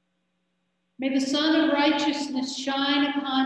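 A man sings a chant in a steady, sustained voice, close to a microphone.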